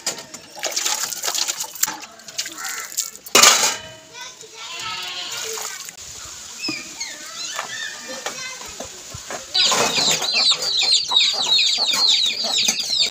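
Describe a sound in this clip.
Metal dishes clink and clatter against each other.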